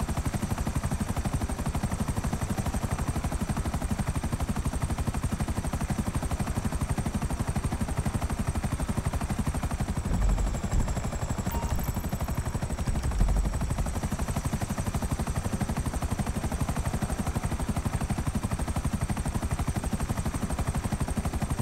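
A jet engine roars steadily in flight.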